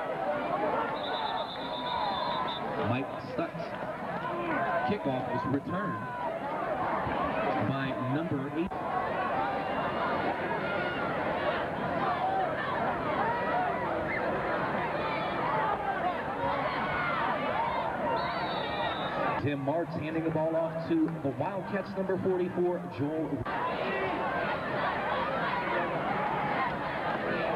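A crowd of spectators cheers and chatters throughout.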